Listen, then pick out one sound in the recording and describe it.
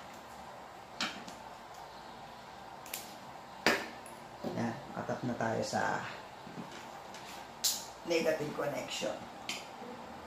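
Plastic wire connectors click and snap as they are handled.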